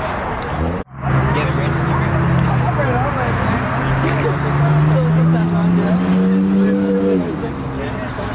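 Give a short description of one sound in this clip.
A car engine idles, then slowly revs higher and drops back down.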